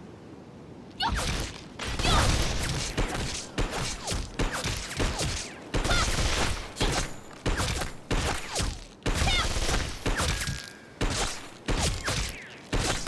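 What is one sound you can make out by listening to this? Gunshots fire in rapid, loud bursts with sharp impacts.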